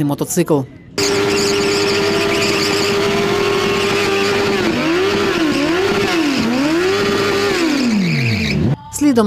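A motorcycle's rear tyre screeches as it spins on the road.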